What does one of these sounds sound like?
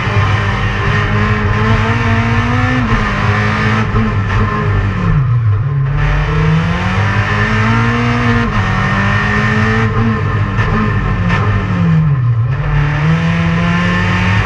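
A race car engine roars loudly from inside the cabin, revving up and dropping as gears shift.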